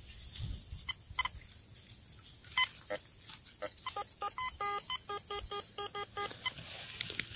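A metal detector beeps in quick repeated tones.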